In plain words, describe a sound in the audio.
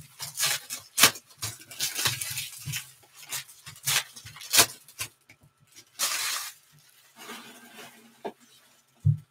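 Trading cards rustle and snap as they are sorted by hand.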